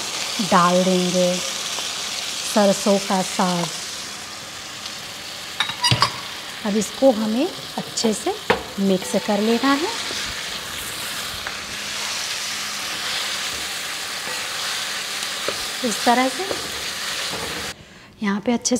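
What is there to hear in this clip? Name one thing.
Oil sizzles steadily in a pan.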